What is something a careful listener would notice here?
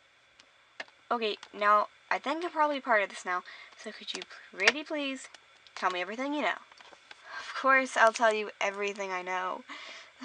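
A girl or woman speaks in character with animation, close to the microphone.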